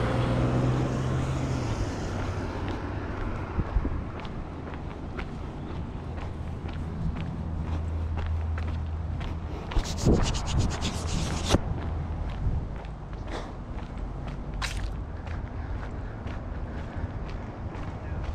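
Footsteps walk steadily on pavement.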